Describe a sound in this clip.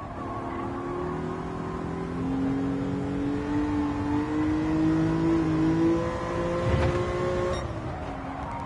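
A car engine revs steadily, rising in pitch as it speeds up.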